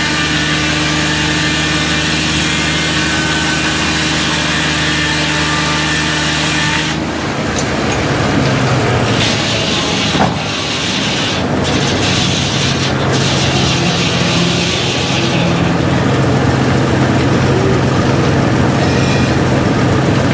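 A sawmill engine drones steadily.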